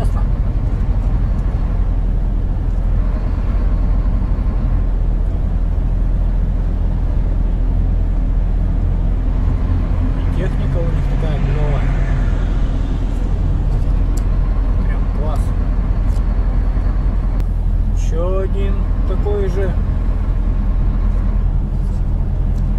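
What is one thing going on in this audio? A vehicle engine drones steadily with a low rumble.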